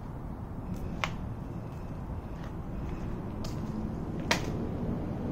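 A jump rope slaps the ground now and then.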